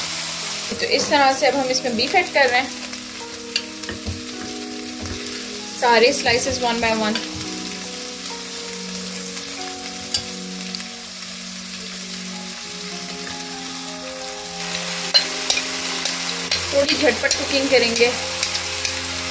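Hot oil sizzles and crackles steadily.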